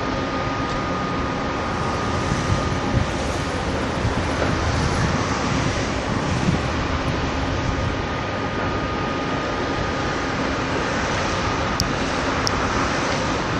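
Wind blows steadily across a microphone outdoors.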